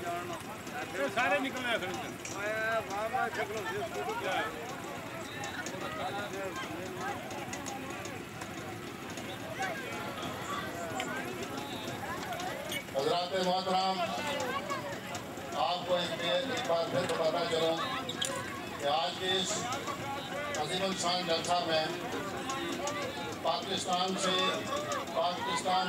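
A crowd of men chants and shouts outdoors.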